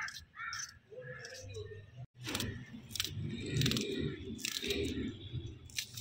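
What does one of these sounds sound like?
A knife slices through vegetables.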